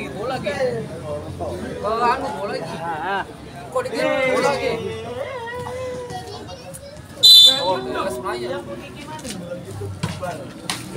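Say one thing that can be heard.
Young women shout and call out to each other nearby.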